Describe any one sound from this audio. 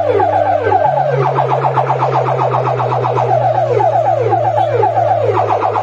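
A fast, repeating electronic siren sound blares loudly through loudspeakers.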